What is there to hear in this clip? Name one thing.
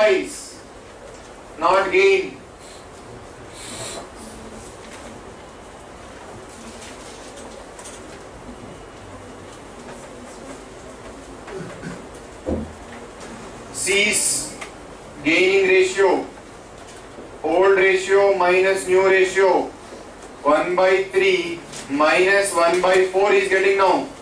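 A man speaks into a microphone in a calm lecturing voice.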